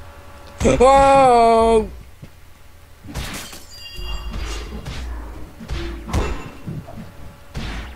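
Blades swing and strike in a quick fight.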